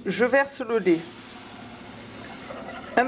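Milk pours and splashes into a pot.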